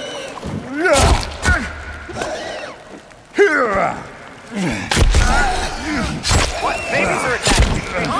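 Heavy blows thud and strike in a struggle.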